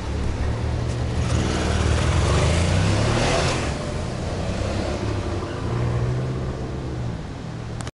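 Cars pass by on a nearby road.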